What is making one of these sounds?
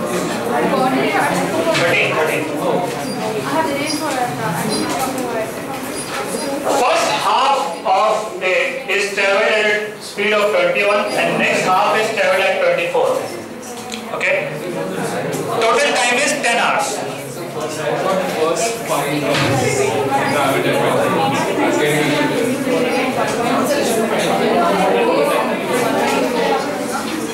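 A man speaks steadily and clearly through a headset microphone.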